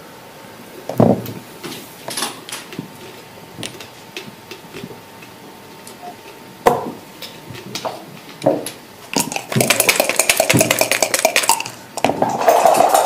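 Wooden checkers click as they are moved across a board.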